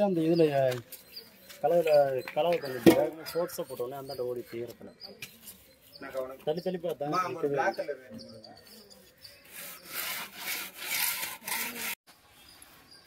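A trowel scrapes and slaps wet plaster onto a brick wall.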